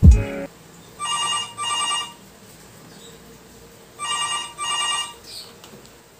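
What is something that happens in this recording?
A phone rings in short, repeated bursts.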